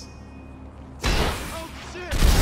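A rifle shot cracks.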